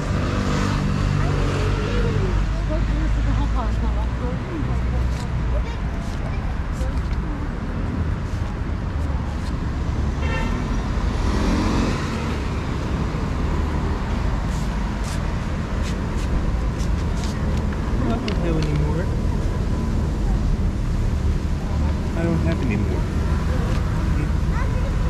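Flip-flops slap on stone paving as a person walks.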